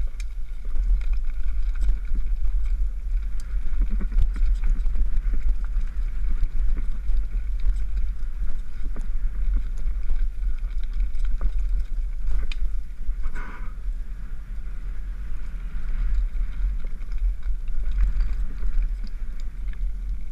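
Tyres rattle and crunch over rough stony ground.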